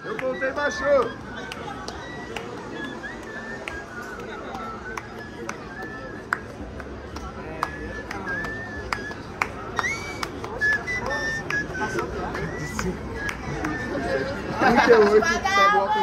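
A man calls out to the crowd with animation, close by.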